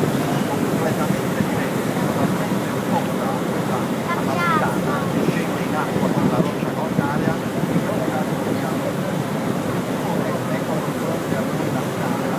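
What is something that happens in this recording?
Wind buffets a microphone with a steady rumble.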